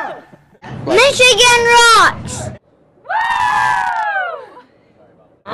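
Young women imitate a race car whooshing past with their voices.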